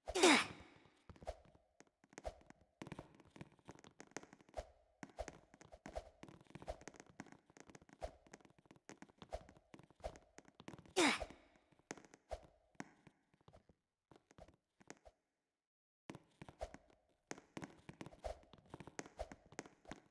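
Quick footsteps thud as a figure runs down steps.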